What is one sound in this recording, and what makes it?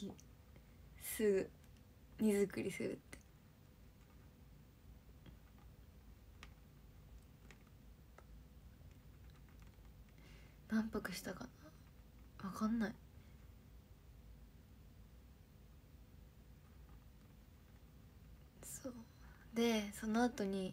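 A young woman speaks casually in short bursts, close to a microphone.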